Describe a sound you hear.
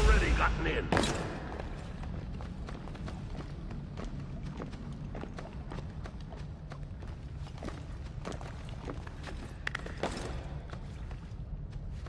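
Soft footsteps patter quickly on a hard floor.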